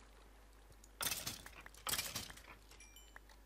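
A sword strikes a creature with sharp hits.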